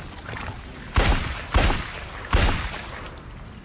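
Pistol shots ring out loudly, one after another.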